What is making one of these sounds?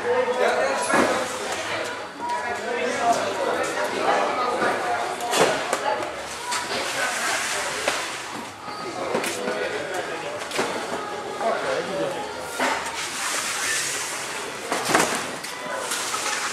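A van door bangs and rattles.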